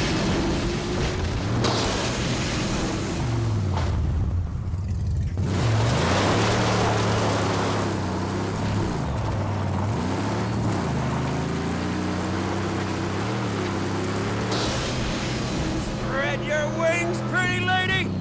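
An engine revs and roars, its pitch rising and falling.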